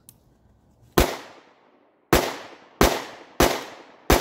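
A pistol fires several quick, loud shots in a row.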